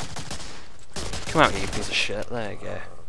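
A submachine gun fires a short burst of shots.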